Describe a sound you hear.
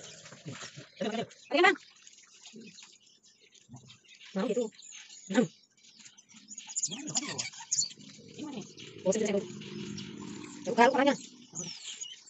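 Small animals chirp and squeak in high, shrill bursts.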